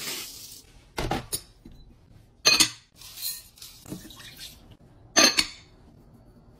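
Glass bowls clink as they are stacked.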